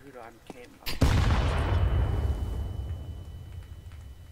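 A loud blast booms and rumbles away.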